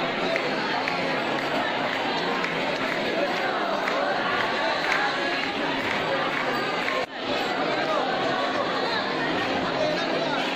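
A large crowd of men and women chatter and call out loudly all around.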